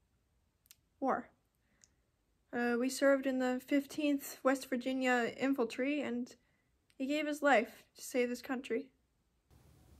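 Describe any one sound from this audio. A teenage girl talks calmly and steadily, close by.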